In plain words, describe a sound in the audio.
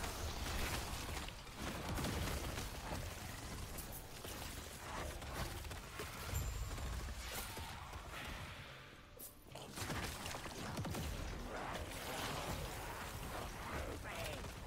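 Magic blasts and crackles burst in quick succession.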